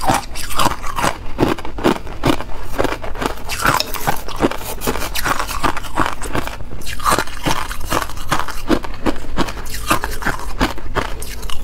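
A spoon scrapes and clinks against ice cubes in a glass bowl.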